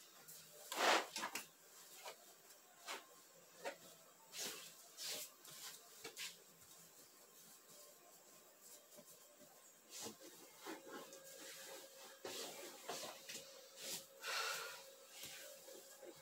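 Fabric rustles and swishes as a bed sheet is smoothed and tucked.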